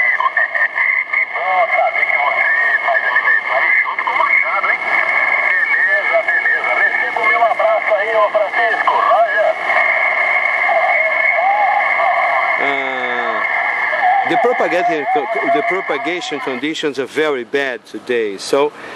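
A man's voice comes tinny and crackly through a radio loudspeaker.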